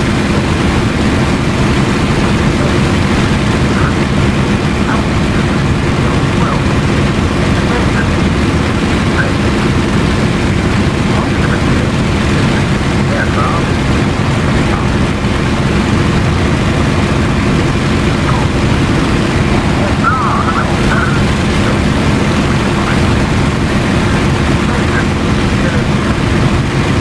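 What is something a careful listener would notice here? A propeller aircraft engine drones steadily from inside the cockpit.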